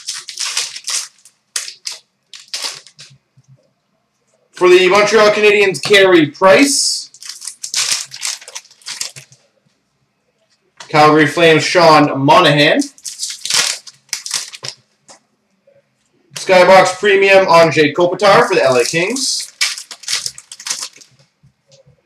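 A foil card packet crinkles and tears open.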